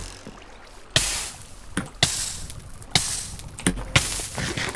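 Fire hisses and crackles in loud bursts.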